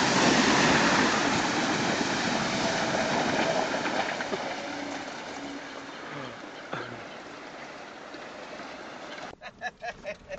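A vehicle engine rumbles as it drives over stones.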